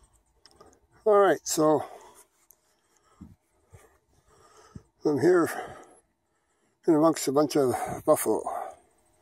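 An older man speaks calmly and close up.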